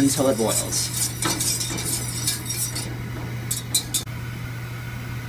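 A gas burner hisses steadily.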